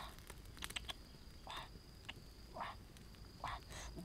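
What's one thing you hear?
A hand scrapes charred skin off roasted meat in short strokes.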